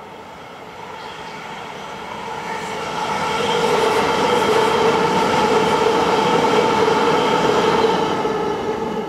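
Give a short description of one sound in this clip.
The traction motors of an electric train whine as it passes.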